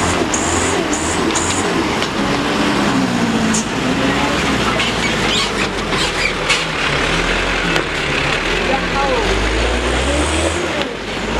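A heavy truck engine rumbles and strains nearby.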